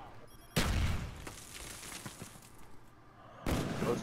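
A sniper rifle fires a loud single shot.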